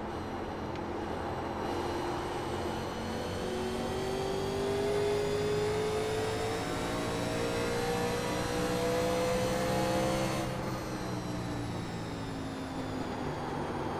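Other race car engines drone nearby, rising and falling in pitch.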